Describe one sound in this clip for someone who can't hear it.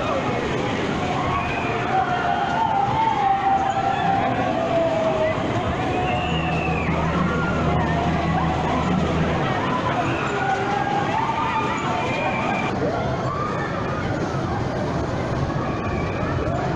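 Riders scream and shout on a fairground ride.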